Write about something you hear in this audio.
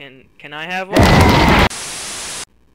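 A man lets out a loud, roaring scream.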